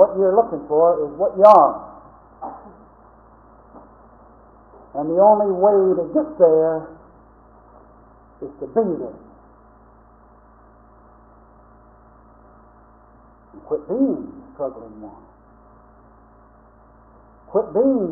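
A small dog howls and yowls in short bursts nearby.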